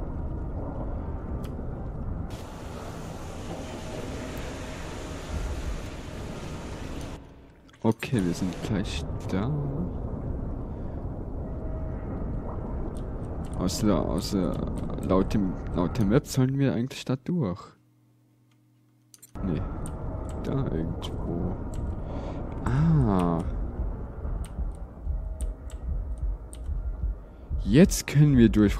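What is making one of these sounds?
Water churns and gurgles with a low, muffled underwater rumble.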